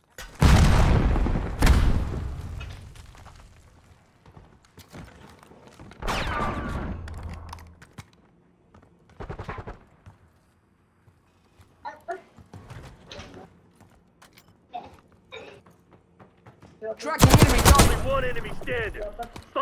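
Loud gunshots crack and boom, echoing briefly.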